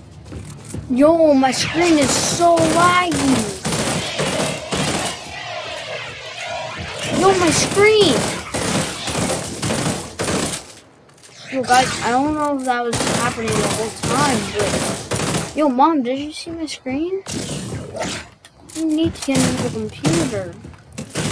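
A boy talks with animation into a close microphone.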